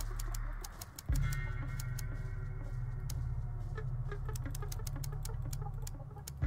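Dials of a combination lock click as they turn.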